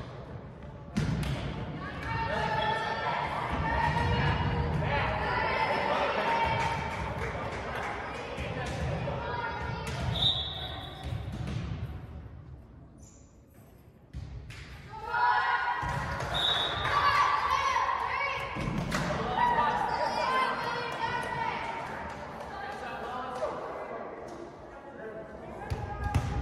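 A volleyball is struck with a sharp smack in a large echoing gym.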